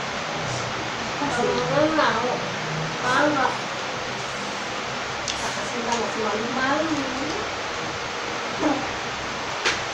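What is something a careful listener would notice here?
A girl speaks and exclaims close by.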